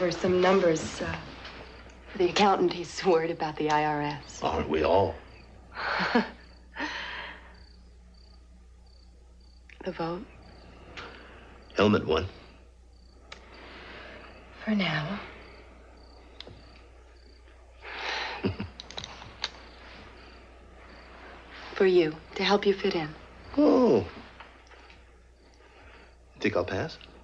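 A man speaks in a low, quiet voice.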